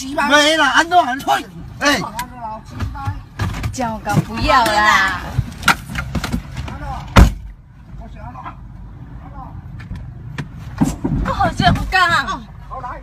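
Loud knocks and thumps sound inside a car.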